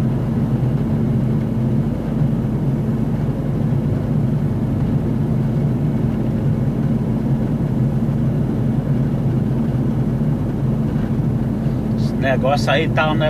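A bus engine drones steadily while driving along a road.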